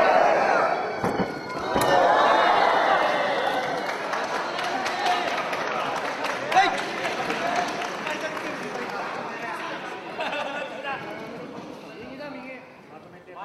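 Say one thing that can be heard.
A crowd cheers and shouts loudly in a large hall, then quiets down.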